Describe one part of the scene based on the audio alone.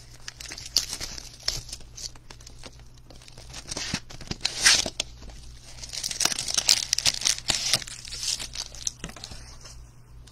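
Plastic wrap crinkles as it is torn off a cardboard box.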